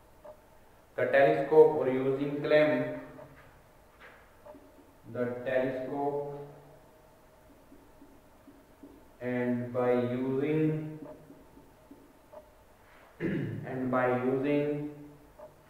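A man speaks calmly and clearly into a nearby microphone, in short phrases with pauses.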